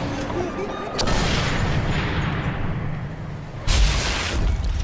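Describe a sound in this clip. Gunshots ring out nearby.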